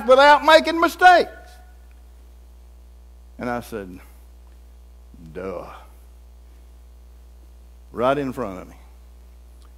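An elderly man preaches with emphasis through a microphone in a large room, pausing between phrases.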